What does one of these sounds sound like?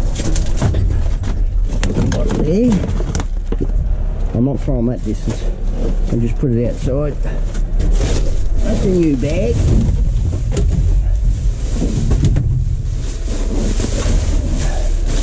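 Trash rustles and clatters as someone rummages through a metal bin.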